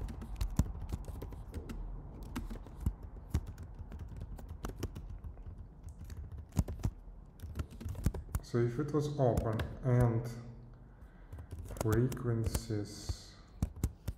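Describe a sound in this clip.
Keys clatter rapidly on a computer keyboard.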